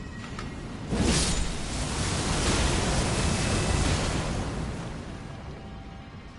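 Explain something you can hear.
A loud magical whoosh swells and fades.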